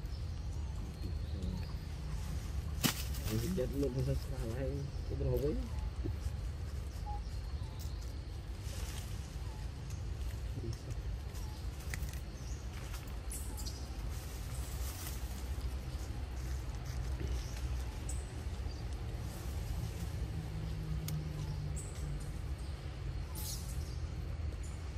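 A monkey crinkles and crackles a plastic wrapper.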